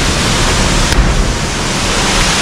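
A body splashes into a pool of water.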